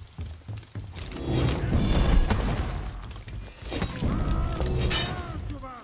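Metal weapons clash and ring.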